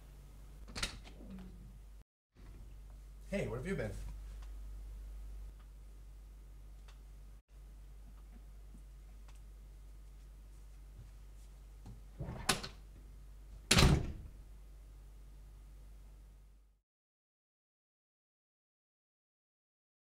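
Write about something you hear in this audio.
A body thuds onto a hard floor.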